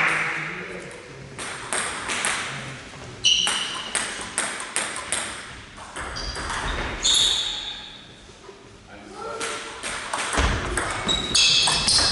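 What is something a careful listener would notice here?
A table tennis ball clicks back and forth off bats and the table in an echoing hall.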